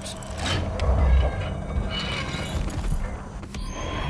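A heavy safe door swings open with a creak.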